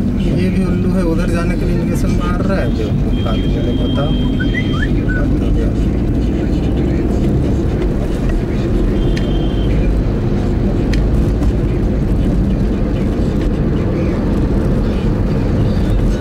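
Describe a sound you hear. Road noise and engine hum fill the cabin of a small hatchback car as it drives along.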